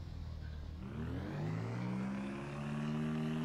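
A small vehicle's engine revs up and rises in pitch.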